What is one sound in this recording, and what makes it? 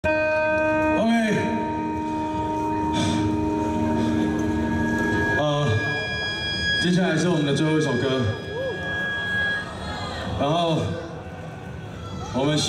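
A young man sings loudly into a microphone over loudspeakers.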